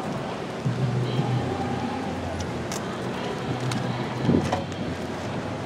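Footsteps tap on a paved walkway outdoors.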